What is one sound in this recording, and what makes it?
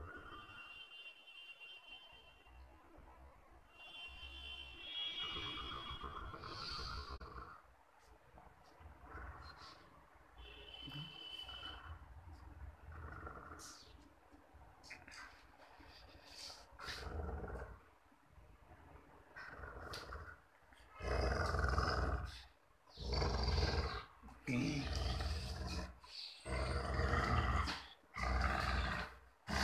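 A dog growls and grumbles playfully up close.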